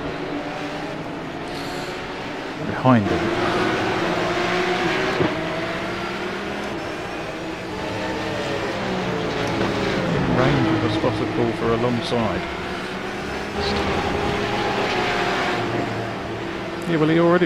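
A racing car engine revs up and down through gear changes.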